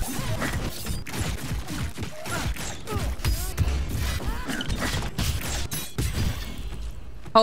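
Weapons clash and spells crackle in a fantasy battle.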